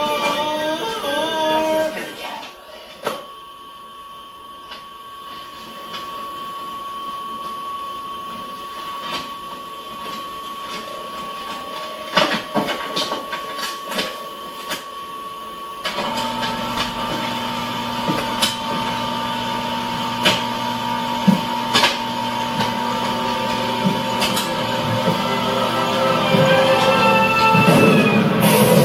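A copy machine hums steadily.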